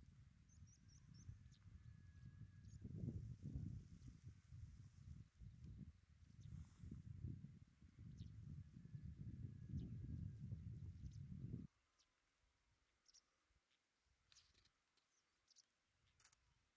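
A small bird chirps in short, high notes.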